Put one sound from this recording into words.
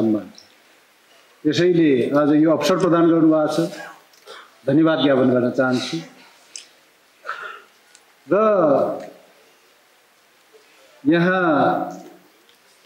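A middle-aged man speaks slowly and deliberately into a microphone, in bursts with pauses.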